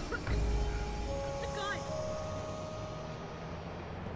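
An electronic alert chimes in a few short rising tones.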